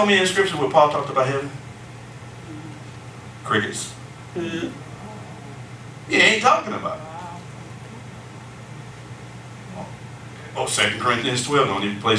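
A man speaks with animation in a room with some echo, pausing between phrases.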